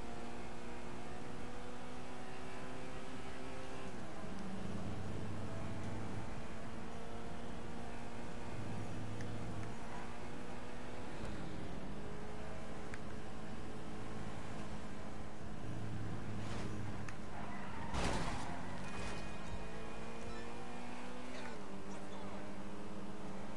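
A car engine hums steadily and shifts gears as it speeds along.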